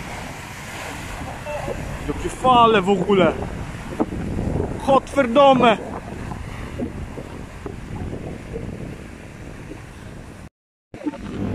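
Waves crash and foam over rocks close by.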